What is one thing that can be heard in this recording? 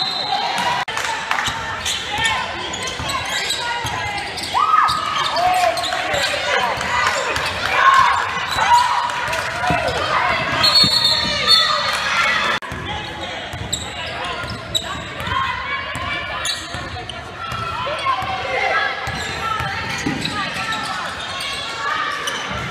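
Young women call out to each other in a large echoing gym.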